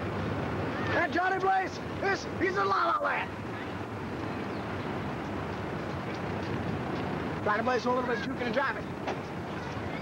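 Young people shout excitedly close by.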